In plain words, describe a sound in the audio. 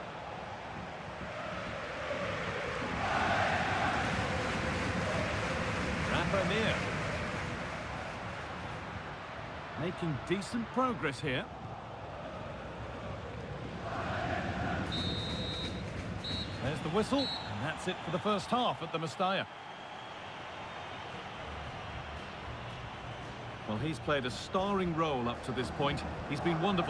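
A large crowd roars and chants in a stadium.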